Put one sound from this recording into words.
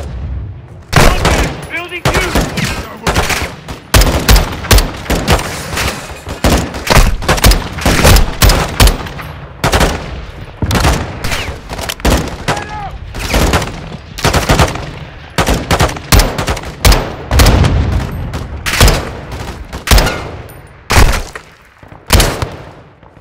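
A rifle fires loud shots, one after another.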